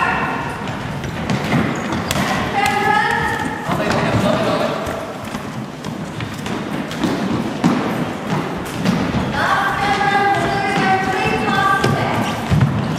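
Men shout to each other in a large echoing hall.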